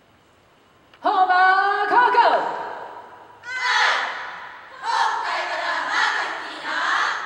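A woman chants loudly through a microphone.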